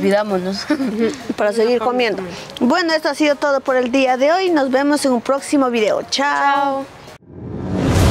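Young women speak together with animation, close by.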